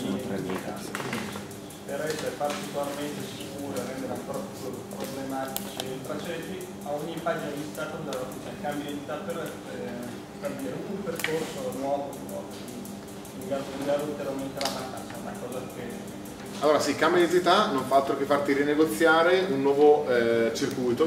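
A man speaks calmly to an audience in a room with some echo, his voice growing louder and closer.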